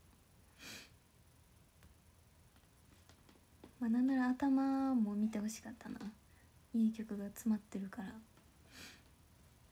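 A young woman breathes out audibly.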